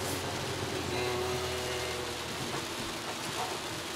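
A man speaks calmly close by inside a car.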